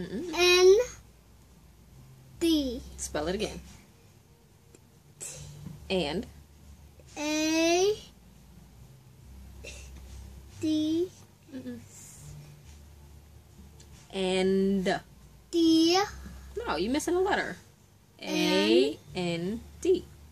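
A young boy speaks up close in a high voice.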